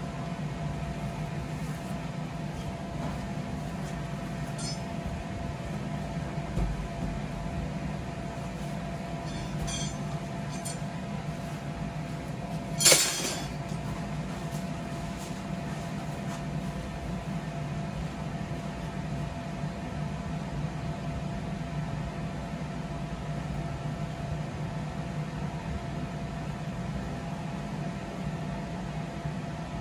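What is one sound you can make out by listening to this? A blower fan hums steadily and loudly outdoors.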